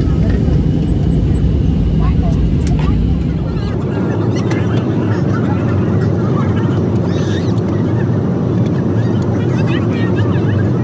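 An airliner's engines roar steadily in flight.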